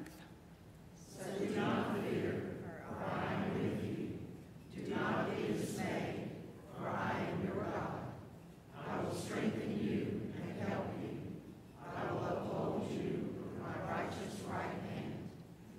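A choir and congregation sing together in a large echoing hall.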